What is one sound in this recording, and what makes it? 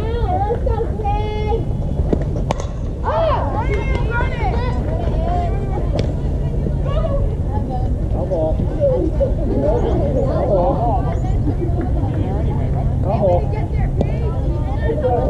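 Young girls cheer and shout from around the field.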